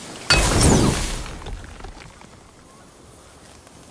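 A magical blast roars and crackles against a wall.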